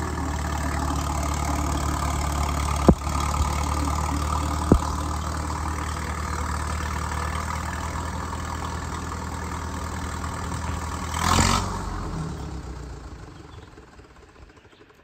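A diesel engine of a tracked digger rumbles steadily and then fades away.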